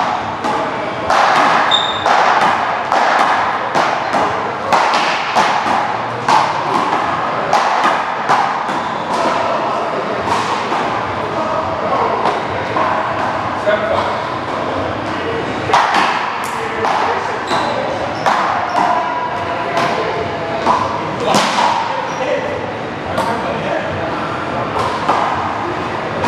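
Rubber balls smack sharply against a wall and floor, echoing in a large hall.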